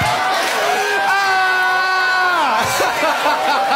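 A young man shrieks and laughs into a microphone.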